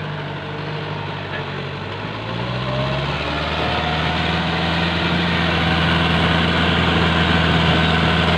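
A tractor engine rumbles steadily, growing louder as it comes closer.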